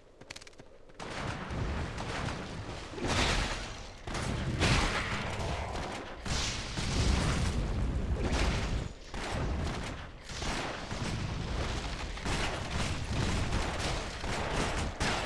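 Fighting and spell effects clash and burst loudly.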